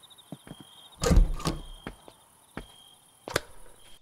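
A wooden door swings open with a thud.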